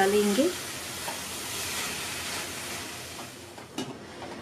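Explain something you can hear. A spatula stirs and rustles through leafy greens in a metal pan.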